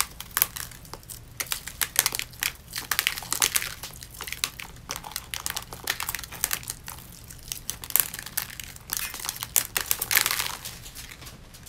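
Long fingernails peel rhinestones off skin with crackling clicks.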